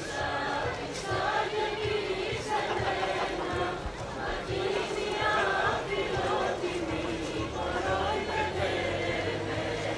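Dancers' feet step and stamp in rhythm.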